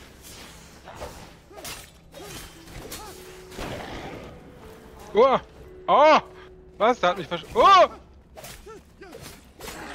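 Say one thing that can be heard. Weapons strike and clash in a fight.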